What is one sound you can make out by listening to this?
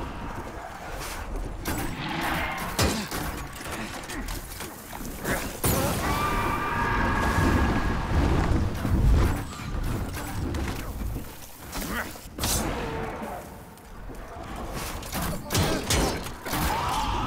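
Weapons clang and strike in a fight.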